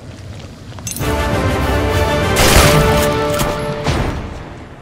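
A shotgun fires with a loud blast.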